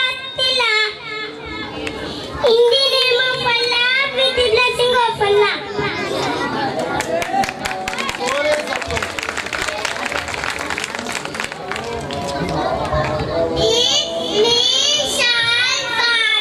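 Young children sing together through microphones.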